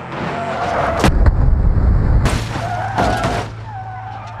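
A car crashes with loud metallic bangs.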